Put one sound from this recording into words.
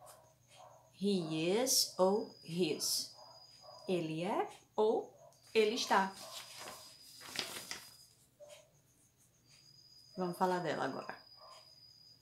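A young woman speaks calmly and clearly, close to the microphone.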